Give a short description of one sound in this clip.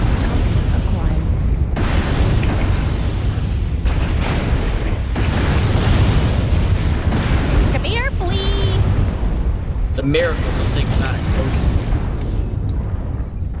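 A deep mechanical rumble drones steadily.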